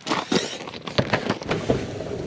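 A hand knocks against a garage door.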